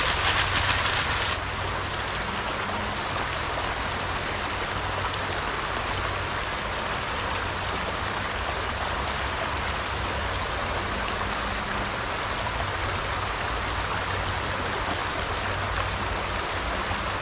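A stream rushes and gurgles over rocks.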